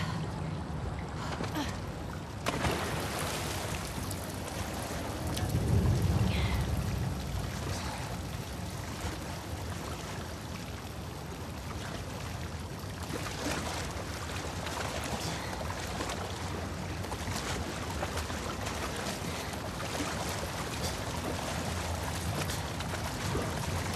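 Water splashes and sloshes as a person wades and crawls through it.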